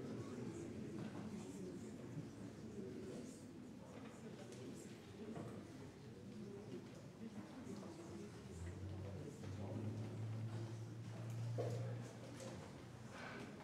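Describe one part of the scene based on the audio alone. A crowd of men and women chat and greet each other all at once in a large room.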